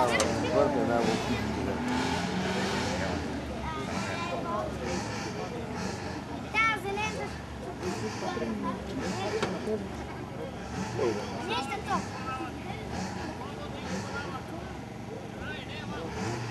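A crowd of men chats nearby outdoors.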